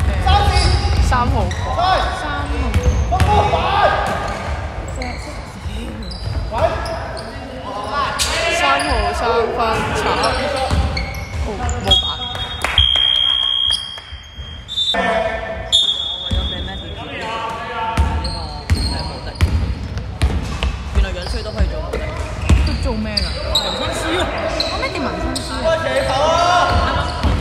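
Young men shout across the court.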